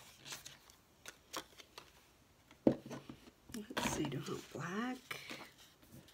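Paper cards tap and shuffle against each other.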